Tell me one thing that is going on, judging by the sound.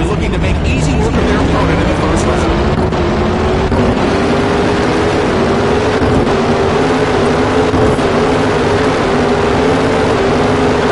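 A race car engine roars and climbs in pitch as the car speeds away.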